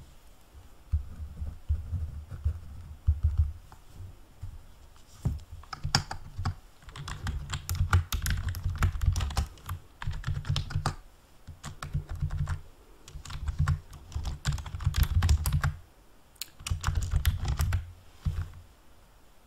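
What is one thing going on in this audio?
Keys clatter on a keyboard in quick bursts.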